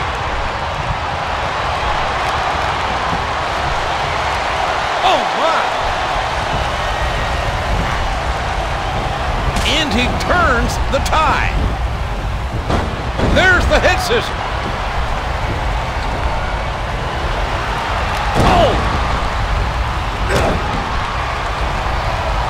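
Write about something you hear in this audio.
A crowd roars and cheers steadily throughout.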